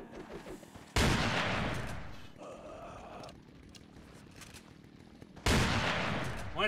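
A shotgun fires loudly with a ringing echo.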